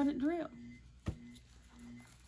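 A plastic bottle is set down on a table with a light knock.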